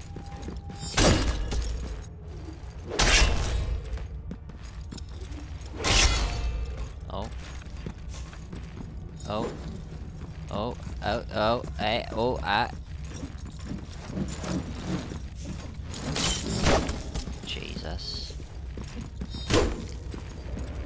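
Heavy blows land with loud thuds.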